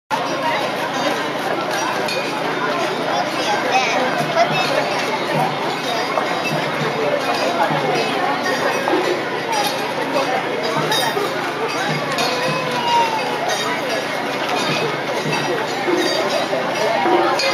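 A large crowd of men, women and children chatters all around outdoors.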